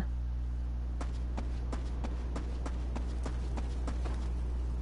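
Footsteps run quickly on hard ground.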